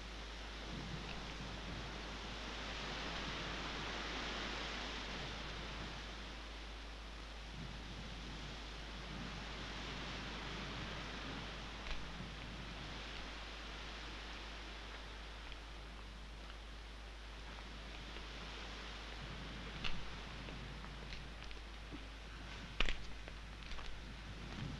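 Women talk quietly in the distance outdoors.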